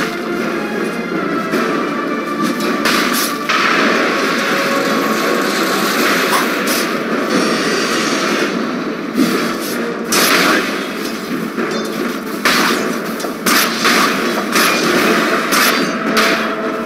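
Game weapons clash and magic effects burst and crackle in a fast battle.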